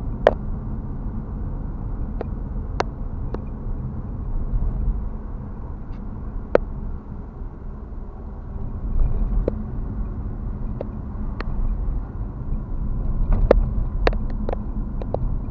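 Something inside the car clicks and knocks sharply over bumps.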